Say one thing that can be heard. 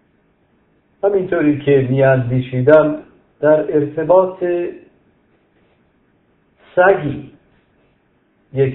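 A middle-aged man speaks calmly and closely into a microphone, in short phrases with pauses.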